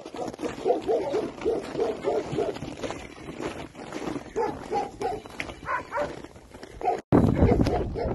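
Horses' hooves thud on snowy ground as they trot.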